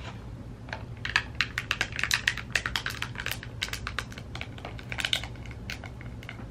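Fingertips tap and slide on a glass surface.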